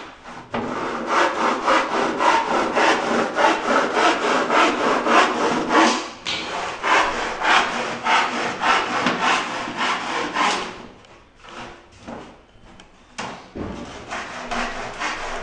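A power saw whines as it cuts through a wooden board.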